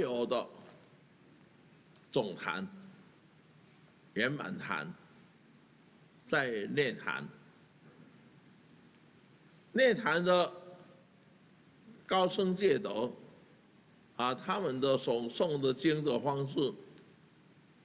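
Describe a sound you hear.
An elderly man speaks slowly and calmly into a close microphone, in short phrases with pauses.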